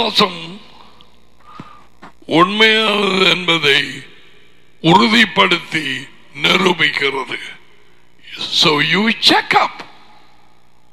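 A man speaks with animation into a close headset microphone.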